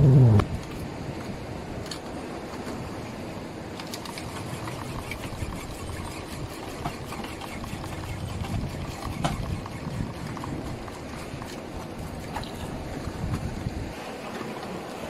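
Wind rumbles over the water.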